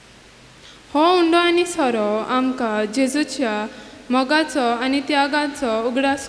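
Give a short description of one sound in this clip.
A young girl reads aloud into a microphone.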